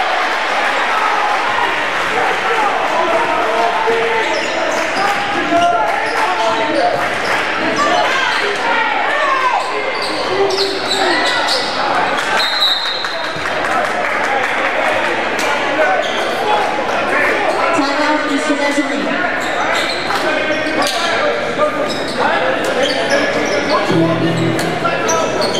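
A crowd cheers and murmurs in a large echoing gym.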